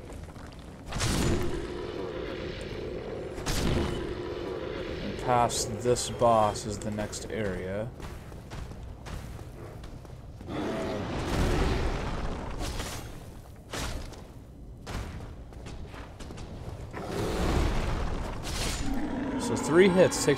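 A sword clangs and slashes against a creature.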